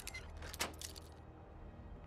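A metal lock clicks as it is picked open.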